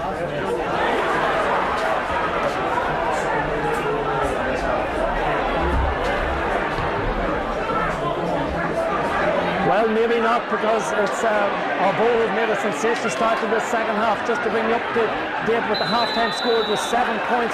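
A crowd of spectators murmurs and cheers outdoors.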